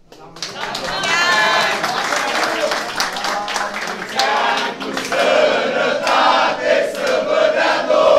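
Several men cheer and shout loudly.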